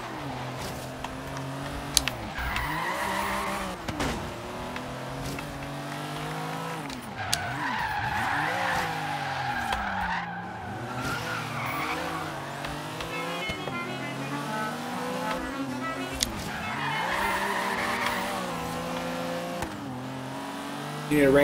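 A car engine revs and roars, rising and falling as the car speeds up and slows down.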